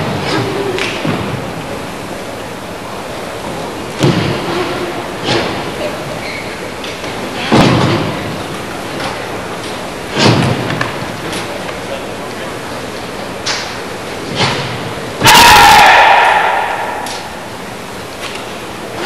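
Bare feet stamp and slap on a wooden floor.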